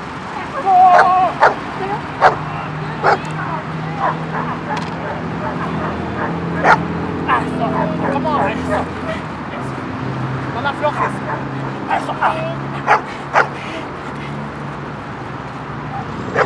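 A dog growls and snarls while biting.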